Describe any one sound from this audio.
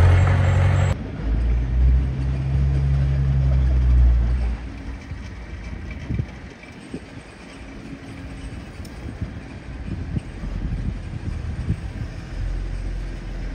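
A dump truck engine idles and revs.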